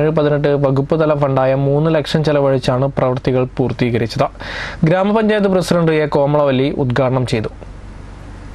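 A young man speaks steadily into a close microphone.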